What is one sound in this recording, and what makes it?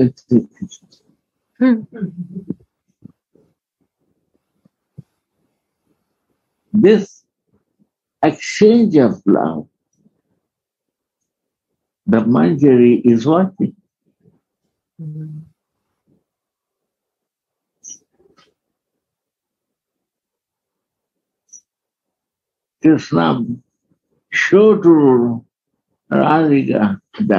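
An elderly man speaks slowly in bursts, heard through an online call.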